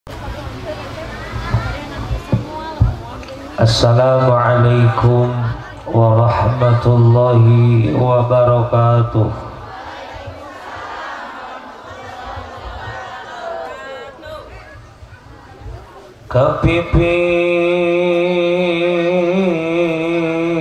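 A man sings and chants into a microphone over loudspeakers, in a large echoing space.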